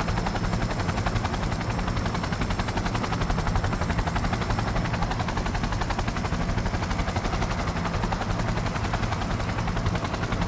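An aircraft engine drones with a fast, steady beat.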